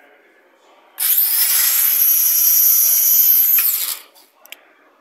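A small electric toy car motor whines loudly as the car speeds down a track.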